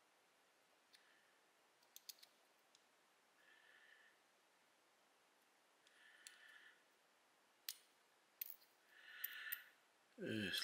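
Small brass lock parts click and tick softly.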